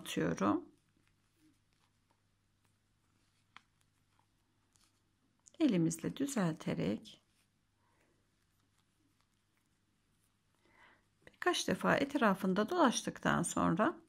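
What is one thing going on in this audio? Fingers softly rustle and tug fluffy yarn.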